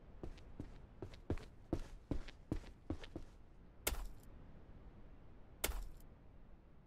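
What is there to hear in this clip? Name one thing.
A hammer knocks on wooden boards.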